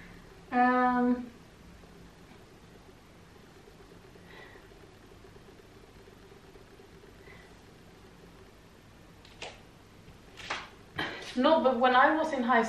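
A young woman speaks calmly close by.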